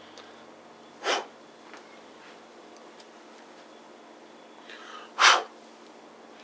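A lighter clicks and sparks as it is struck.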